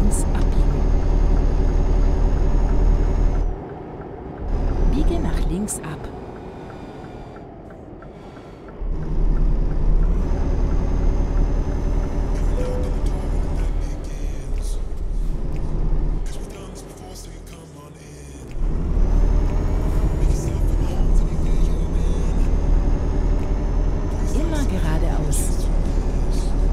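A truck engine rumbles steadily and rises and falls with speed.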